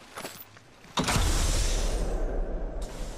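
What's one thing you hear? A rifle fires a loud rapid burst.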